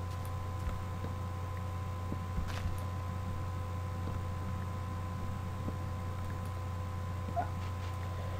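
Blocks crack and crumble as they are dug through.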